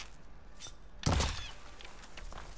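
A heavy thud lands in a leafy bush.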